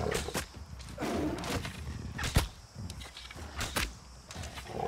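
A large beast growls and snarls.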